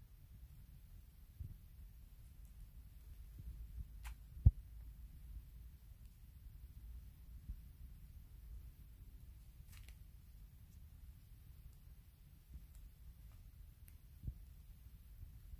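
A hamster nibbles and gnaws quietly at close range.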